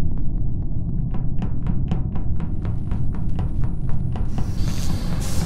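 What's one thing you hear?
Quick footsteps patter along a hard floor.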